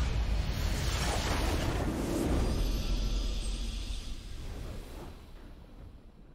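A game's nexus explodes with a loud crackling blast.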